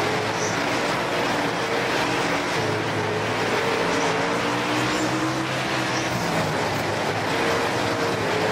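A race car engine roars loudly, revving up and down.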